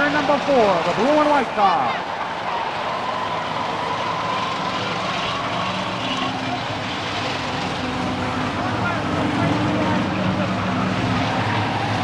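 Tyres roll on a road.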